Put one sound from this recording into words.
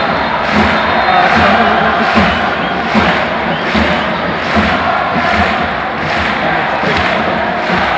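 A large stadium crowd chants and roars steadily, echoing under the open sky.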